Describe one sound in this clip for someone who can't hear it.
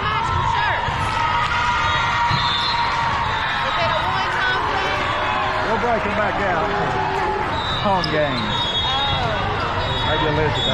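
A crowd of voices chatters and echoes through a large hall.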